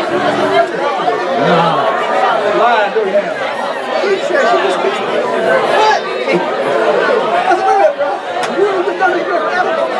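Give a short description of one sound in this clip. A crowd of men and women talk and chatter all at once in a large echoing hall.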